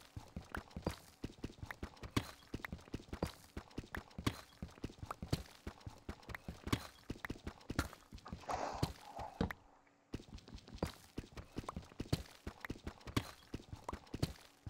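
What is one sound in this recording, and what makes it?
A pickaxe taps rapidly at stone in a game.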